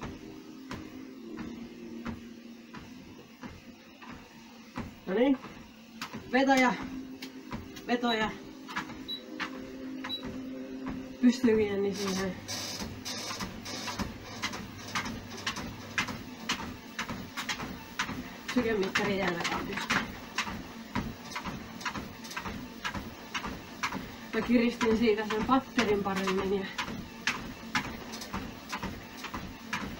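A treadmill motor hums steadily.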